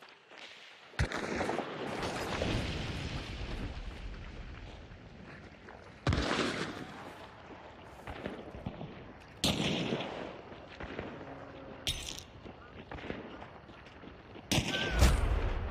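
A pistol fires sharp shots that boom and echo outdoors.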